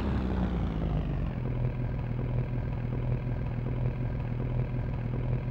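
A car engine idles with a low, steady hum.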